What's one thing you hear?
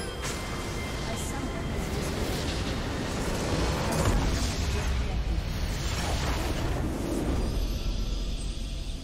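A structure explodes with a deep, rumbling blast.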